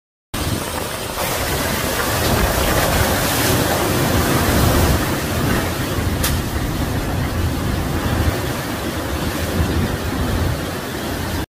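Rain pours down heavily.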